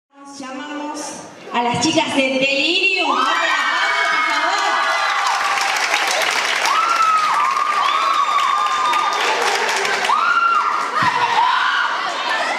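A crowd cheers and screams excitedly.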